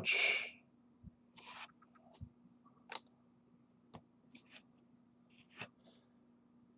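Cards shuffle and slide in a man's hands.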